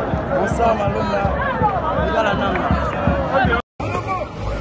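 A crowd shouts and whistles noisily nearby.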